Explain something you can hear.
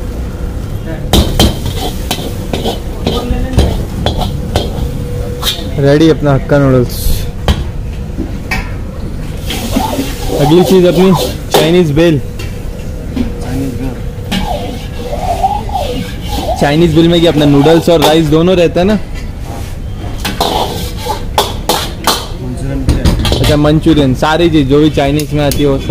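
A metal ladle clanks and scrapes against a wok.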